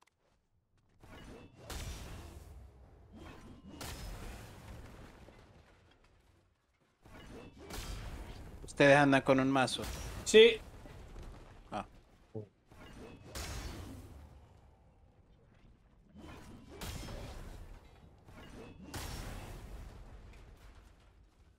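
A pickaxe smashes into walls over and over, with debris crashing down.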